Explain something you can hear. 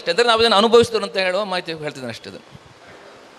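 A man speaks loudly through a microphone in an echoing hall.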